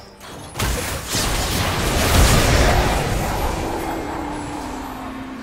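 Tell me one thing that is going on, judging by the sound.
Game spell effects blast and crackle loudly.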